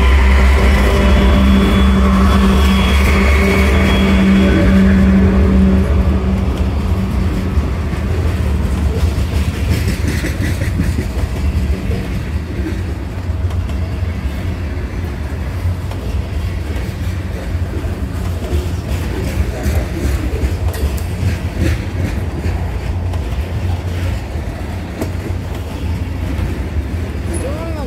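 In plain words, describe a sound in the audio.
Steel wheels click over rail joints.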